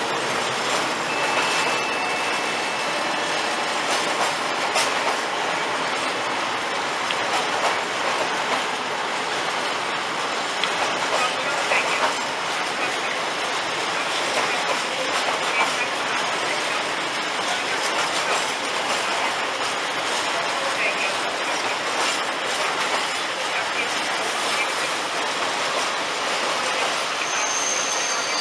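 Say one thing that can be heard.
A freight train rolls steadily past, its wheels clattering and squealing on the rails.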